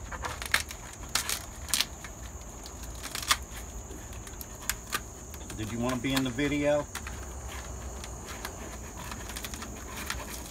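Kernels crackle and snap as a corn cob is scraped by hand.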